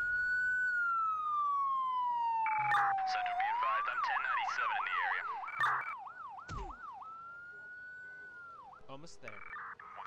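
Police sirens wail and yelp, rising and falling.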